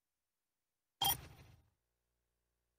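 A short bright menu chime sounds once.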